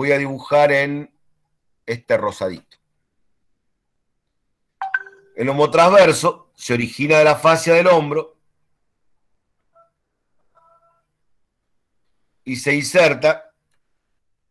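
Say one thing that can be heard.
A man speaks calmly through an online call, in short phrases with pauses.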